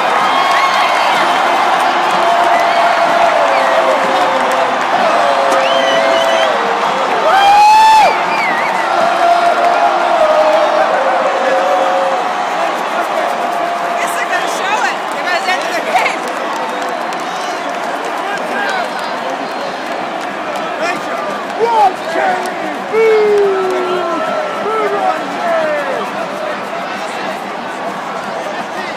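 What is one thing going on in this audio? A huge stadium crowd cheers and roars loudly in a large open space.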